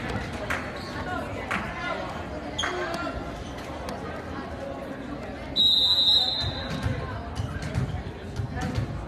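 A crowd chatters and murmurs in a large echoing gym.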